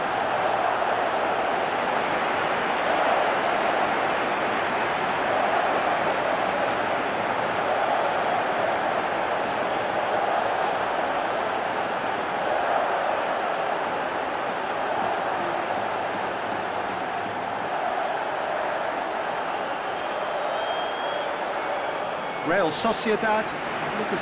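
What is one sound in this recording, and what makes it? A large stadium crowd roars and cheers steadily throughout.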